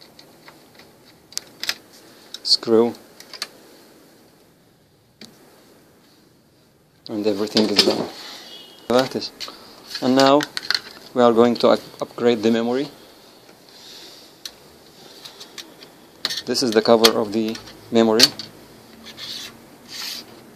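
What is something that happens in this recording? Metal parts click and rattle as hands handle them.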